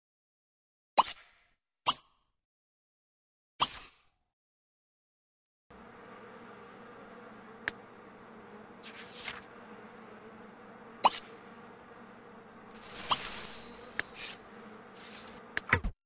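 Short, sharp clicks sound now and then.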